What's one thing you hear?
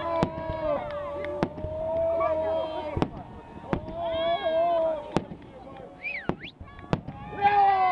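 Fireworks bang and crackle in the distance.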